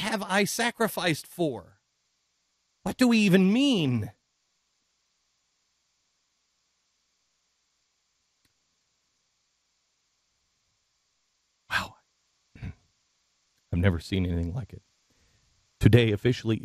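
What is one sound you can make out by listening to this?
A middle-aged man speaks emotionally into a close microphone, with long pauses.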